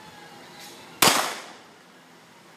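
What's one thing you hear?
A single pistol shot cracks loudly outdoors.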